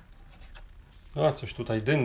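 A pastel crayon scratches softly on rough paper.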